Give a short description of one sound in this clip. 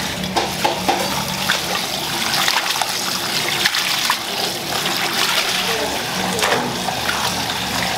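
Hands swish shredded cabbage around in water.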